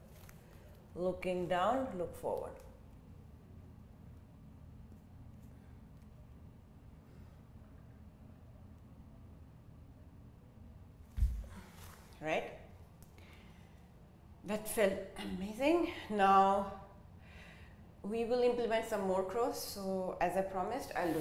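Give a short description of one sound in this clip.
A young woman talks calmly close by.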